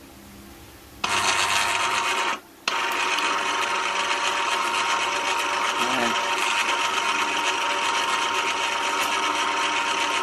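A small engine runs with a steady, loud hum.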